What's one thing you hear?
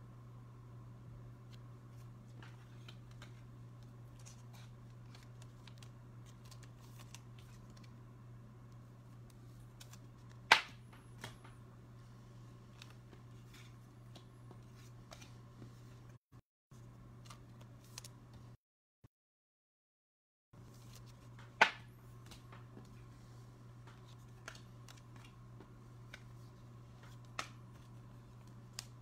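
Trading cards slide and tap softly on a wooden table.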